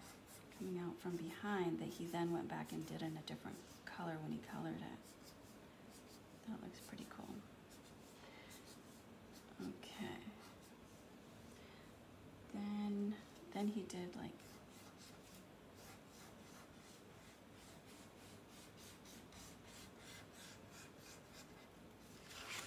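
A felt-tip marker scratches and squeaks across paper.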